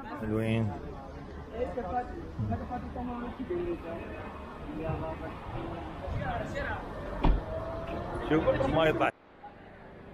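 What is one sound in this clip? Young men talk outdoors close by.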